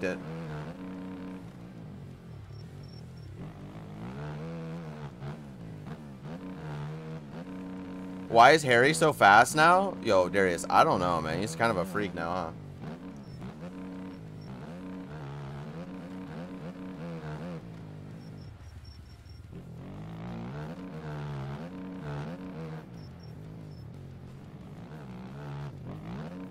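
A motorbike engine revs up and down steadily.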